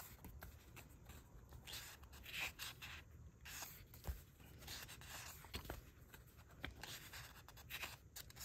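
Book pages rustle and flip close by.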